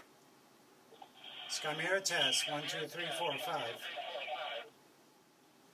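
A voice comes crackly through a two-way radio speaker.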